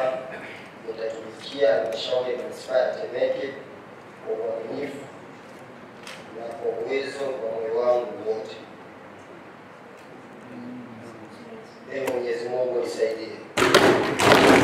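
A young man reads out an oath in a steady voice, close to a microphone.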